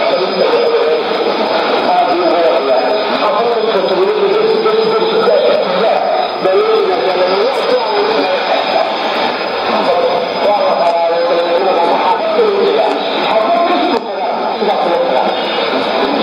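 Static hisses and crackles steadily from a radio.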